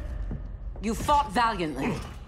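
A woman speaks in a strained voice.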